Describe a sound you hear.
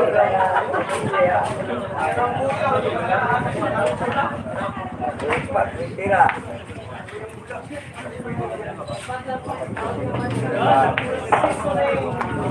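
Billiard balls click together on a pool table.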